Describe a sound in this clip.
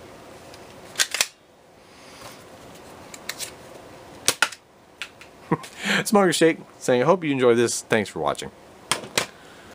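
Hard plastic toys click and clack as they are handled.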